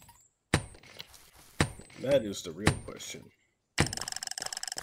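A pickaxe strikes rock several times.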